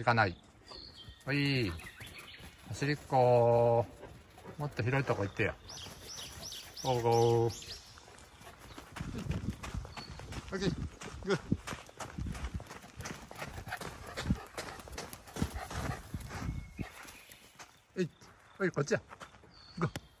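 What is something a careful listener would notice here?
A dog barks loudly and excitedly nearby.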